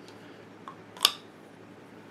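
A small plastic capsule clicks as it is twisted.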